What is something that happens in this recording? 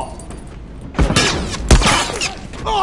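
Gunshots crack loudly in a game.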